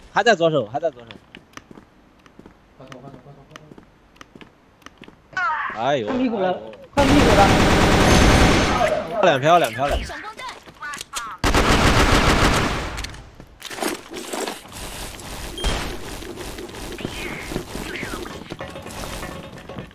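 Gunshots crack from a game.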